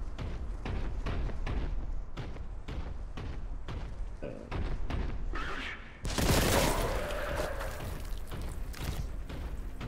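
Heavy footsteps thud steadily on stone.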